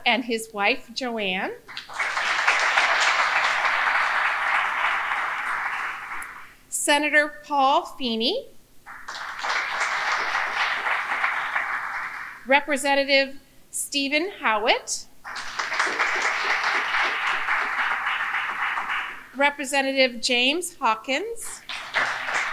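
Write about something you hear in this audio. A middle-aged woman speaks with animation into a microphone, in short bursts.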